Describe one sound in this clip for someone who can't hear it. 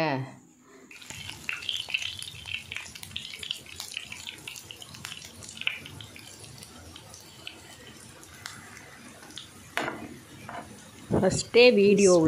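Hot oil sizzles and crackles in a pan.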